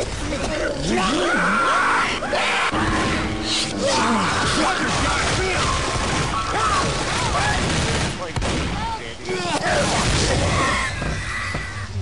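Zombies snarl and growl close by.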